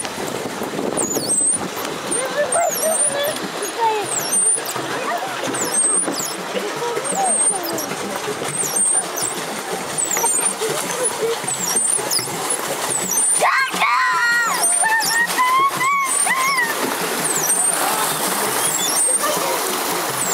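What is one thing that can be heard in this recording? Water laps and splashes against a small boat.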